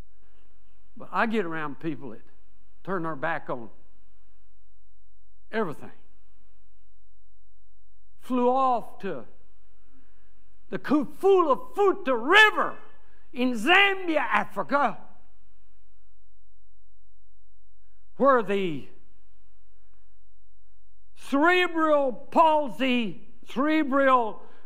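An elderly man speaks with animation into a microphone, with pauses between phrases.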